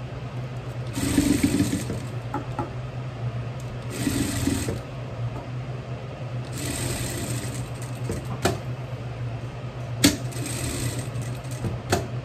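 A sewing machine stitches in short, quick bursts.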